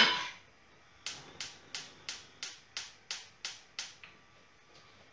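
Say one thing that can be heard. A gas stove igniter clicks repeatedly and evenly.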